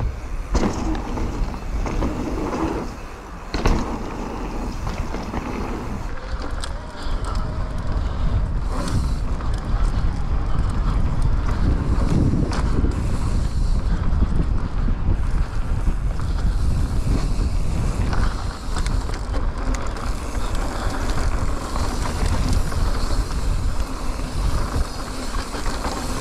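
Wind rumbles loudly across a close microphone.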